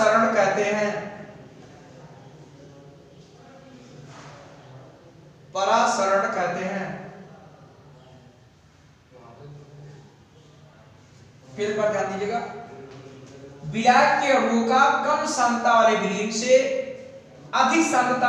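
A man speaks with pauses, explaining calmly in a room with some echo.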